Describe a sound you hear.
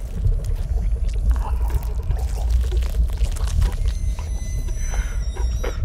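A man groans in muffled distress through a gag.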